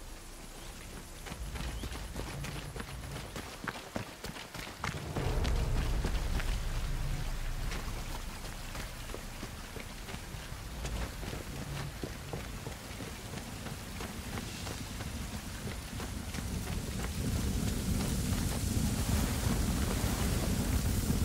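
Footsteps crunch quickly over grass and gravel.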